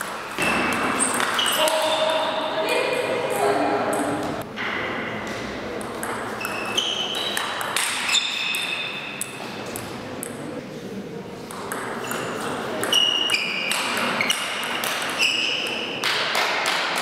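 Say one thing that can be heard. Sports shoes squeak sharply on a hall floor.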